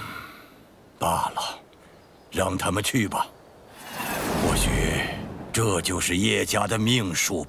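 An elderly man speaks slowly and gravely.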